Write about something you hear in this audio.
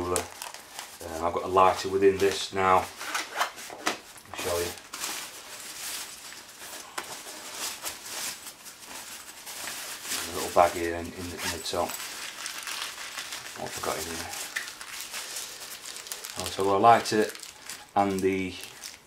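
Fabric and a plastic bag rustle as they are handled close by.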